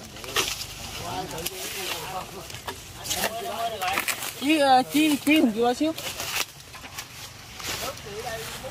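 A man talks nearby with animation.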